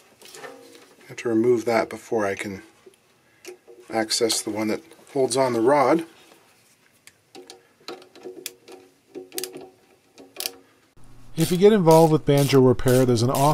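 Metal pliers click and tap against small metal fittings.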